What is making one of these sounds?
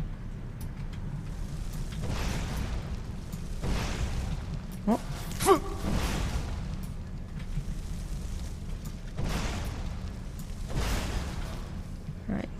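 Fire spells roar and whoosh in bursts.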